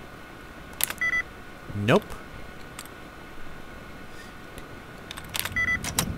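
A computer terminal gives short electronic beeps.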